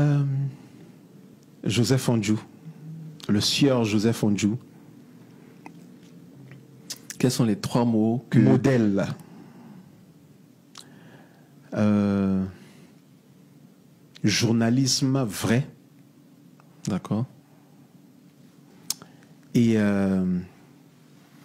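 A man speaks in short bursts with pauses between them.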